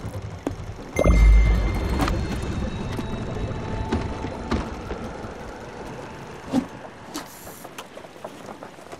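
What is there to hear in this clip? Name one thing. A boat moves through water with a low rumble.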